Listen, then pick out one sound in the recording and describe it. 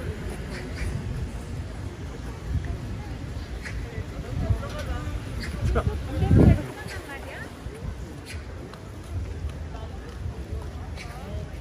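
Footsteps tap on pavement nearby.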